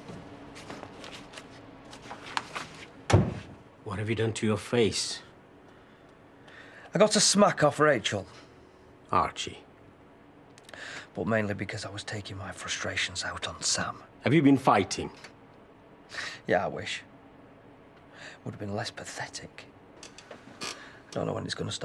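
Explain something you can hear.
An older man speaks calmly and earnestly, close by.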